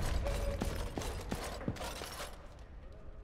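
Footsteps tread across a floor.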